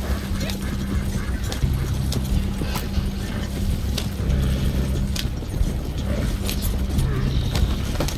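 A horse gallops past nearby.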